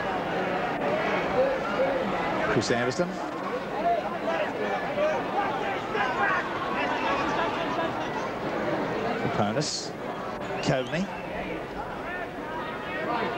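A stadium crowd murmurs and calls out outdoors.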